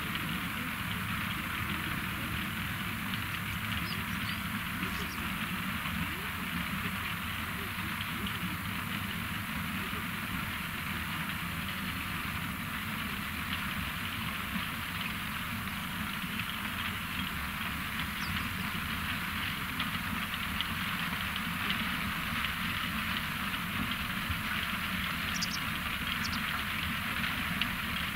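Beets rattle and tumble steadily along a conveyor onto a heap.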